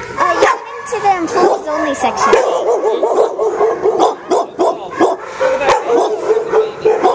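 A dog whines and yelps excitedly up close.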